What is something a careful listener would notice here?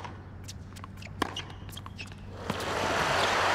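A tennis ball is hit back and forth with sharp pops.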